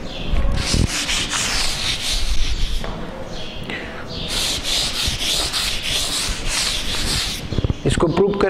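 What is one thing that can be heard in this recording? Chalk scrapes and rubs on a blackboard.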